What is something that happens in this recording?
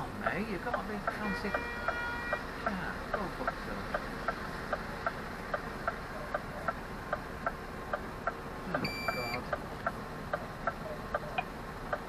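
A bus engine rumbles steadily at low speed.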